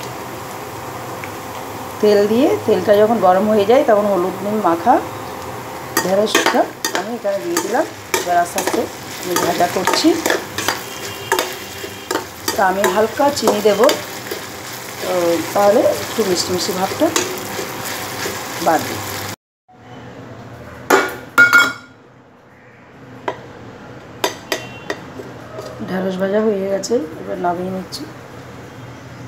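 Okra sizzles softly in hot oil.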